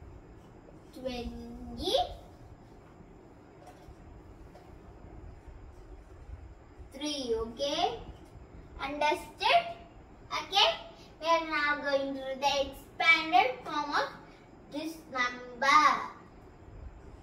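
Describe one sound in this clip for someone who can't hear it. A young girl speaks nearby, reading out slowly.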